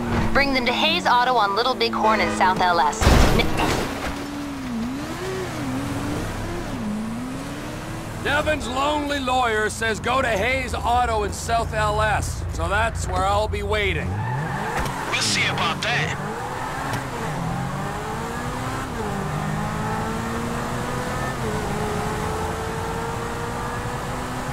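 A sports car engine hums and revs.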